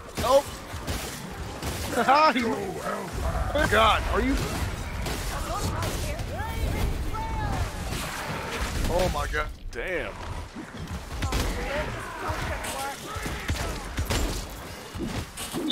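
Blades clash and slash into bodies in a loud fight.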